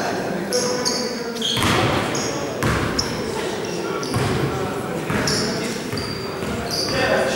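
Sneakers squeak sharply on a court in an echoing hall.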